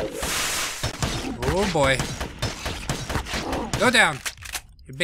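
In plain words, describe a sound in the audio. Blows land with sharp thuds.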